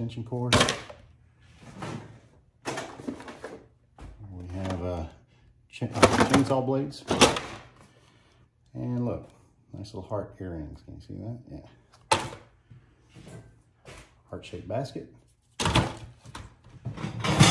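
Objects rustle and knock in a plastic tub.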